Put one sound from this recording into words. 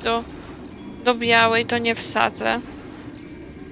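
Bright electronic zaps ring out as a glowing beam fires.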